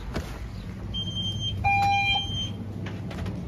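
An electronic door chime beeps as a shop door opens.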